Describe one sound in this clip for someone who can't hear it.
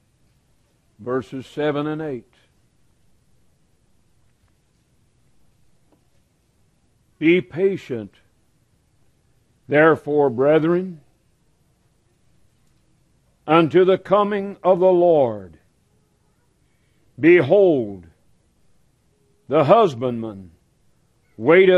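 A middle-aged man speaks slowly and deliberately into a microphone, with long pauses.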